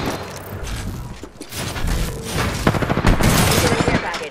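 Metal doors slide open with a clank.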